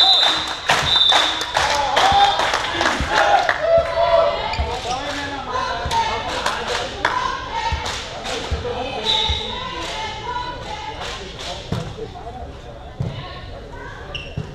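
Players shout and cheer in a large echoing hall.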